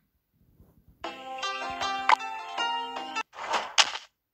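A short game tune plays.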